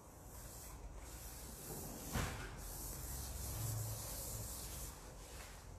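A hand brushes and rubs softly across a smooth surface.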